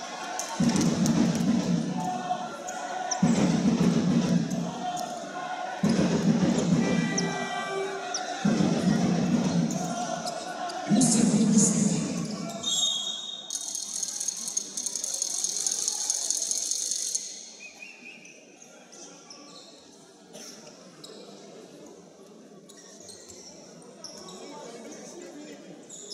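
Sports shoes squeak on a hard court.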